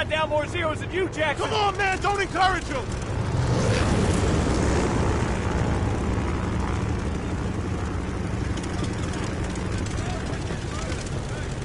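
Propeller plane engines roar steadily.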